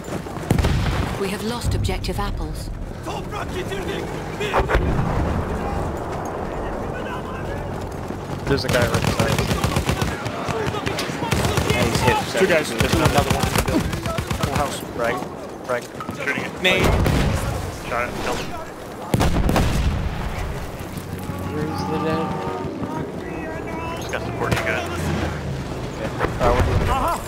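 Rifle shots crack in bursts nearby.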